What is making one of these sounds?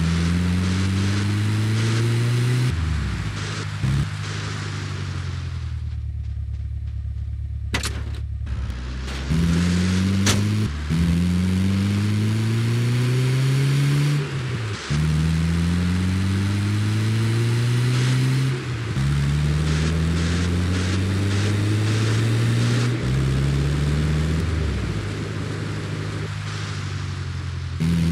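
Tyres rumble over rough ground.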